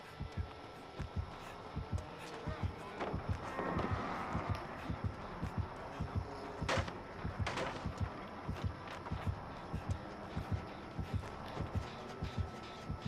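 Footsteps run quickly over grass and wooden boards.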